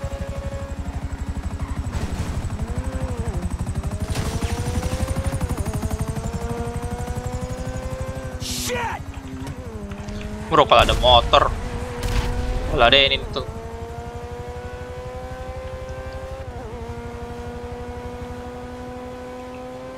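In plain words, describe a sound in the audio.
A sports car engine roars steadily, its pitch rising and falling with gear changes.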